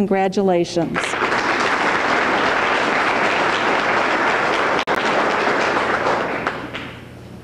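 An audience applauds steadily, then fades.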